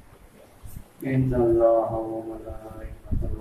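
A man sings out loudly nearby.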